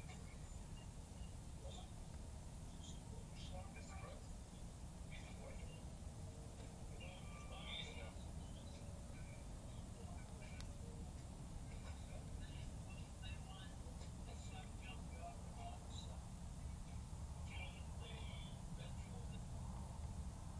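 A small flame crackles and pops softly.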